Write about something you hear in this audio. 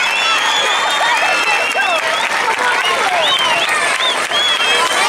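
A large crowd cheers and whistles loudly outdoors.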